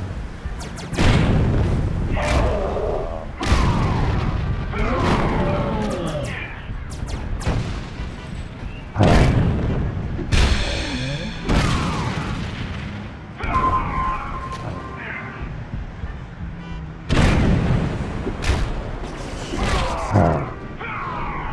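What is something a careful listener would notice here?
Heavy blows land with loud booming thuds.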